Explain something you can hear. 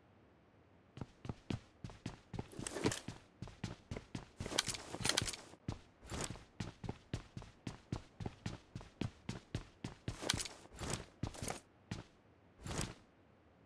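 Footsteps patter quickly along a hard floor.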